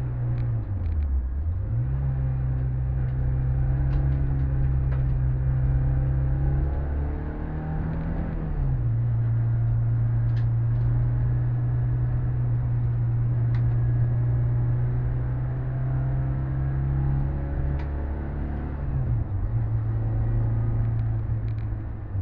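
A car engine roars steadily up close, its pitch dipping and rising with gear changes.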